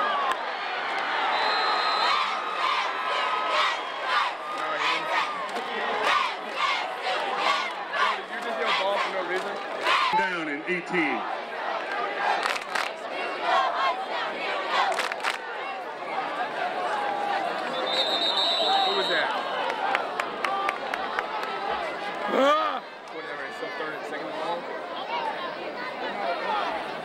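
A crowd cheers and shouts from the stands outdoors.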